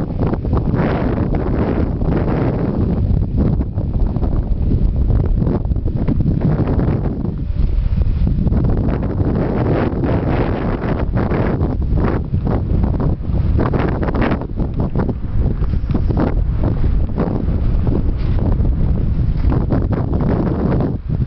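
Strong wind rumbles and buffets the microphone outdoors.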